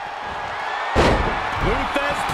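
A body slams heavily onto a wrestling ring mat.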